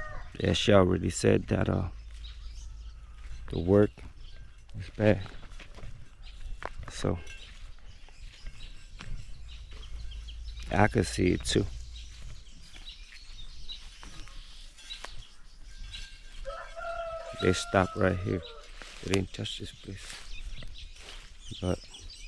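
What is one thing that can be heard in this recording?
Footsteps rustle and crunch over cut grass and loose soil.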